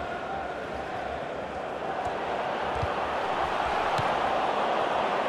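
A stadium crowd roars steadily, growing louder.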